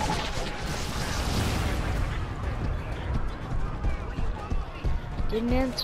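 Heavy explosions rumble and boom.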